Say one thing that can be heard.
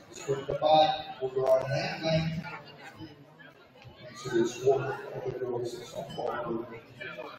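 A crowd of adults chatters nearby in a large echoing hall.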